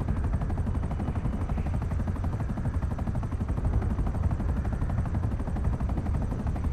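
Helicopter rotor blades thump rapidly and steadily close by.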